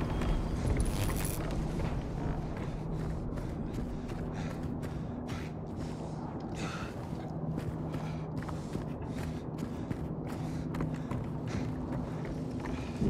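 Footsteps walk steadily on a hard floor in an echoing corridor.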